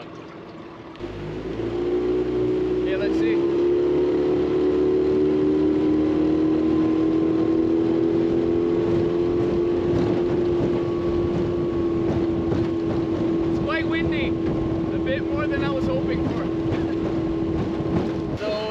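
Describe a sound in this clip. An outboard motor starts and drones steadily.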